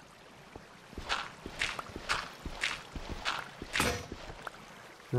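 A pickaxe chips at stone with quick repeated knocks.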